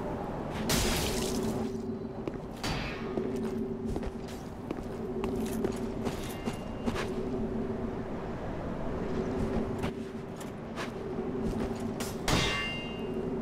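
Metal weapons clash and strike a few times in the distance.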